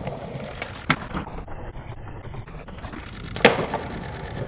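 A skateboard pops and lands with a clack.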